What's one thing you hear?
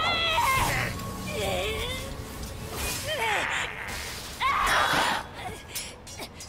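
Fiery explosions burst with a loud roar.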